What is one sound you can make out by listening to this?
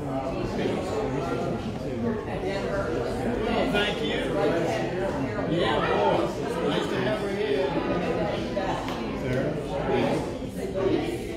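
A man speaks steadily, heard through a microphone in an echoing hall.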